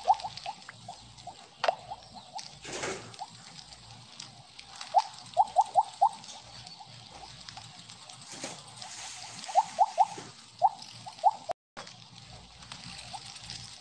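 Short bright pops sound from a snake game as pellets are eaten.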